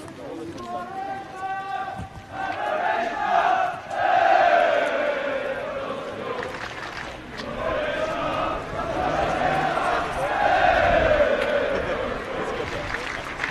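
A crowd of men chants and sings loudly.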